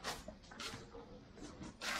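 Footsteps scuff on dry dirt.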